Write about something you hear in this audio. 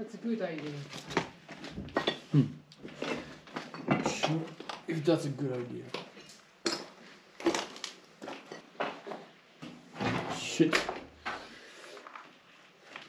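Footsteps crunch over rubble and debris on stairs.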